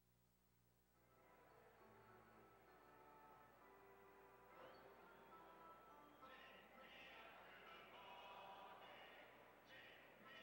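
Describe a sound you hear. A large stadium crowd murmurs in the distance.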